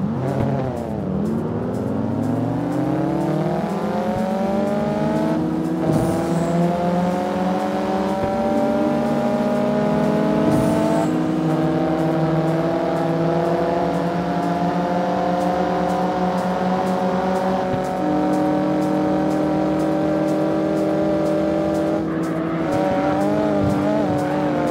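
A car engine roars, climbing steadily in pitch as the car speeds up.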